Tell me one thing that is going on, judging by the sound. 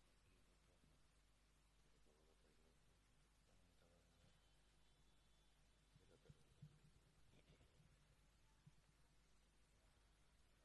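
A man speaks quietly and softly, close to a microphone.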